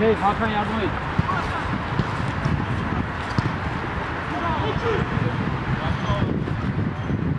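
Men shout to each other across an open field outdoors.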